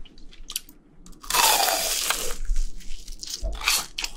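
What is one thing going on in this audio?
A young man bites into crispy fried food with loud crunches close to a microphone.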